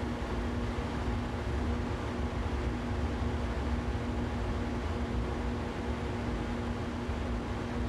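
An electric train motor hums with a steady tone.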